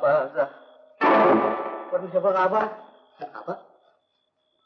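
A man cries out in distress.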